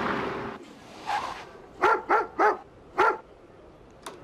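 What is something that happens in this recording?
A dog barks repeatedly.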